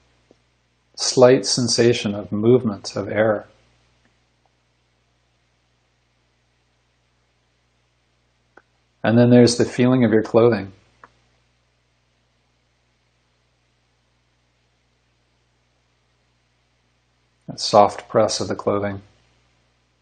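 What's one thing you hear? A middle-aged man speaks calmly into a microphone over an online call, in short bursts with long pauses.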